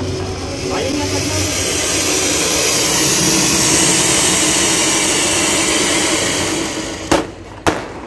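A fountain firework roars and hisses loudly.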